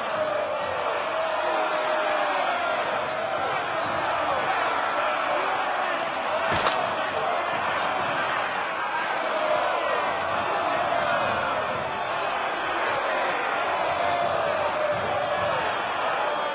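A large crowd of men and women jeers and shouts all around.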